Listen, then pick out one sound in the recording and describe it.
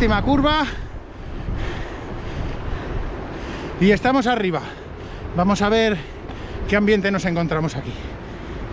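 A middle-aged man talks close to a microphone, slightly out of breath.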